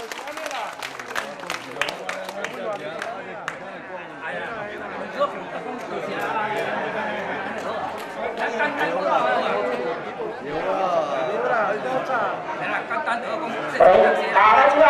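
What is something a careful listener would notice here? A crowd of people chatter around.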